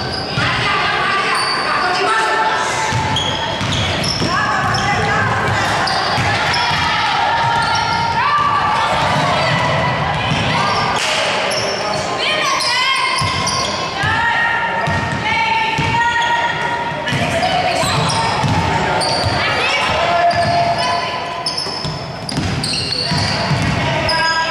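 Sneakers squeak sharply on a hardwood court, over and over.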